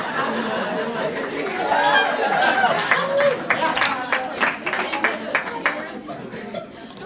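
A large audience claps and cheers.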